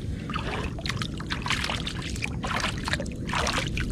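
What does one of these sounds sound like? Water splashes as a hand dips into it.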